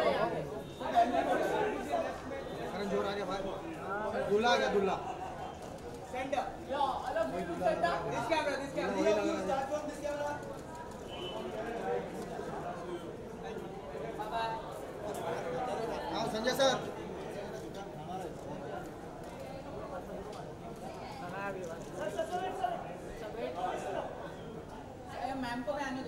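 Several men shout and call out close by, overlapping each other.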